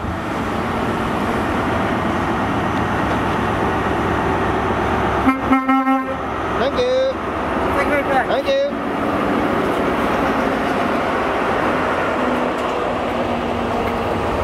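A diesel train engine rumbles loudly as the train rolls past close by.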